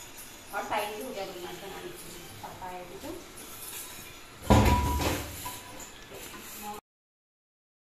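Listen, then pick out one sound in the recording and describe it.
Dishes clatter in a sink.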